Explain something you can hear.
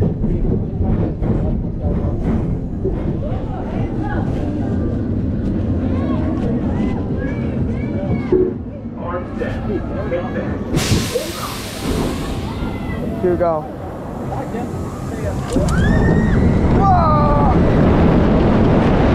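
A roller coaster train rumbles and clatters along its track.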